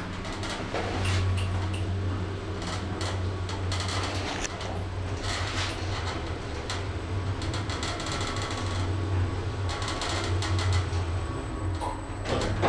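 A traction elevator hums as the car travels.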